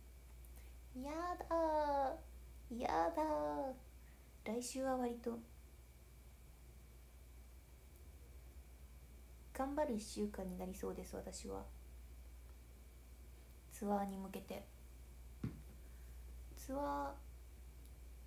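A young woman speaks close up in a high, playful voice, in short bursts.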